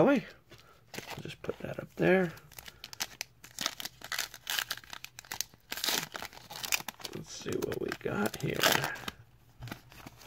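A foil wrapper crinkles and tears as hands rip it open.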